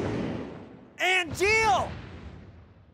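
A young man cries out loudly.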